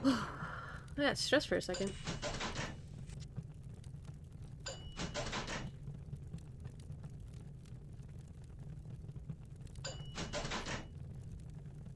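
A game menu plays short bright chiming sounds as upgrades are bought.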